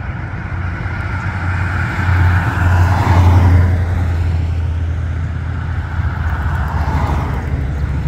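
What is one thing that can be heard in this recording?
Cars drive by on a road.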